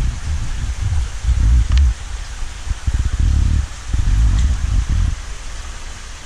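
Water splashes and sloshes as a net is moved through a pond.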